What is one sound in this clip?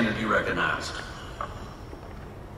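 A man speaks over a loudspeaker outdoors.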